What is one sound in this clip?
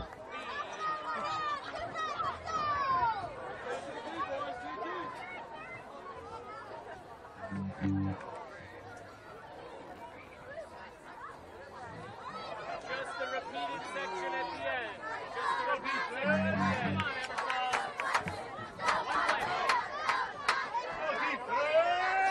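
A crowd of spectators talks and calls out outdoors.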